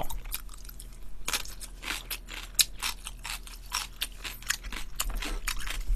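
A young man chews food noisily close to a microphone.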